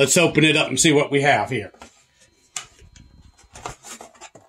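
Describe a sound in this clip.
A cardboard box scrapes and knocks onto a wooden shelf.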